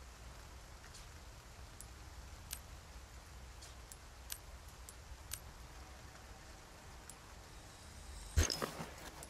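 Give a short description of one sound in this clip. Soft electronic menu clicks tick as selections change.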